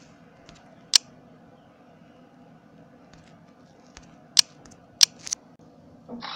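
Menu buttons click sharply.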